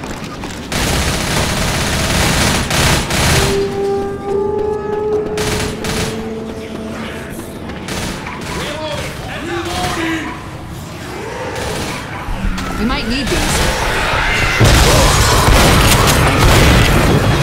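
A shotgun is pumped and reloaded with metallic clacks.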